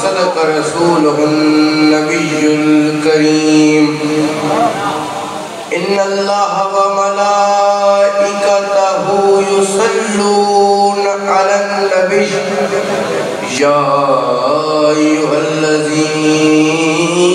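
A young man sings a long, drawn-out chant into a microphone, heard through loudspeakers.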